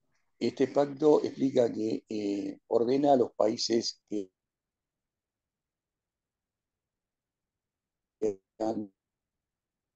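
A man speaks calmly over an online call, pausing between phrases.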